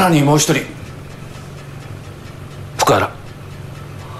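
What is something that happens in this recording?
A man speaks briefly and firmly, close by.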